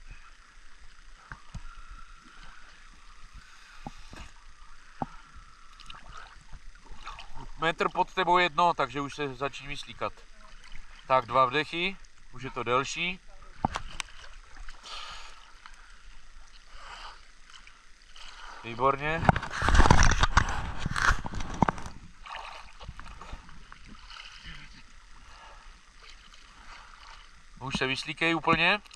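Water sloshes and splashes gently around swimmers.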